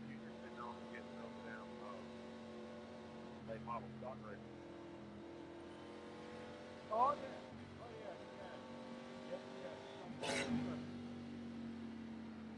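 A race car engine drones steadily at low revs.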